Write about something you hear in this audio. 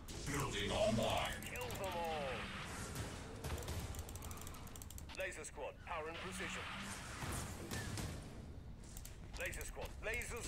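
Game sound effects of gunfire and explosions play.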